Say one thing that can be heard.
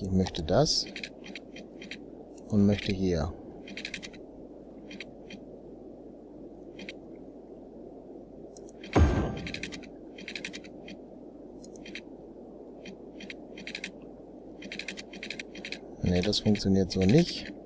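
A game's interface clicks in short, quick ticks.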